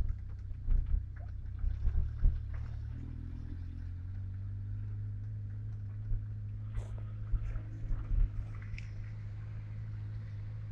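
A car engine idles with a low, steady rumble, heard from inside the car.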